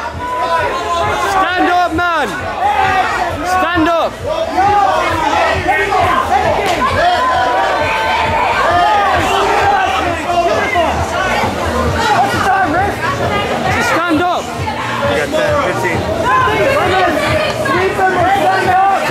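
A crowd of young men and women shouts and cheers loudly close by.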